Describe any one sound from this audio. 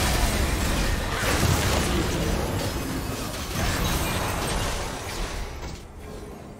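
Magic blasts and weapon strikes crash together in a fast, noisy fight.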